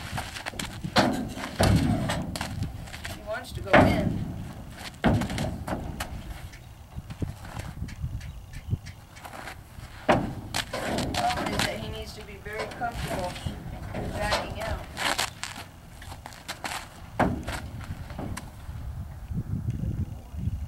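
A horse's hooves thud on the hollow floor of a trailer.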